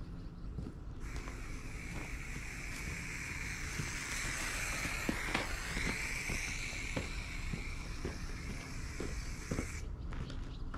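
A spray can hisses in long bursts as paint is sprayed on the ground.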